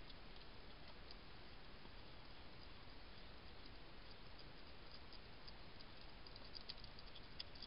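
A hedgehog chews and crunches food up close.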